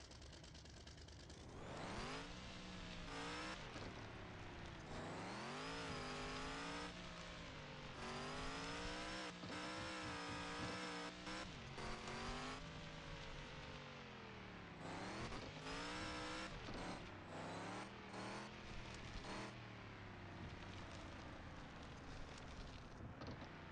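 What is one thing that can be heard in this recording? A truck engine revs up and down, roaring loudly and dropping back to a low rumble.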